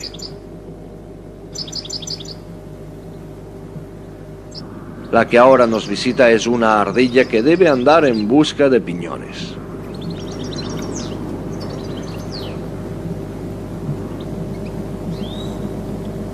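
Small birds chirp in short, high bursts.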